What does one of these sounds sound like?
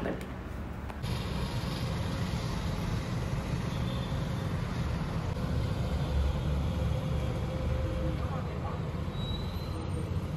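Traffic rumbles steadily far below outdoors.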